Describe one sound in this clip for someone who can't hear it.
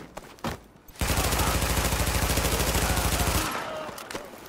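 Rapid automatic gunfire rattles in a long burst.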